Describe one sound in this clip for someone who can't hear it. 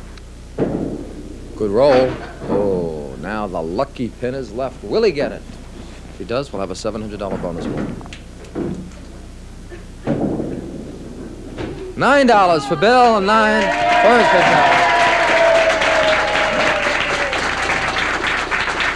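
Bowling pins clatter as they fall.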